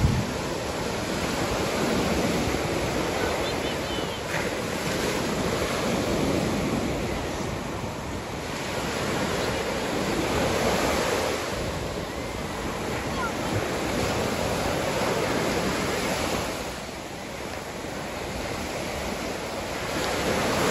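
Ocean waves roll in and break close by, with surges that rise and fall.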